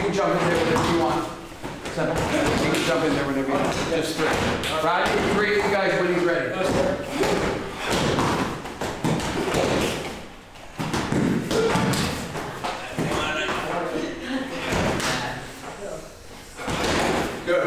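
Fists and feet thump against hand-held pads.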